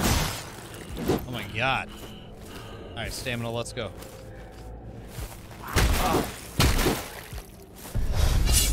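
Swords clash and thud in a fight.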